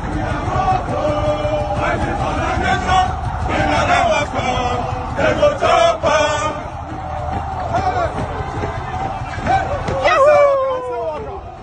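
A large group of men sing together in chorus as they march outdoors.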